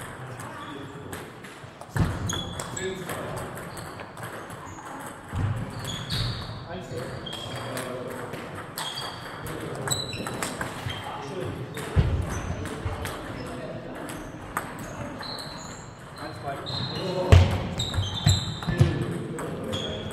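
Table tennis balls click sharply off paddles and tables in a large echoing hall.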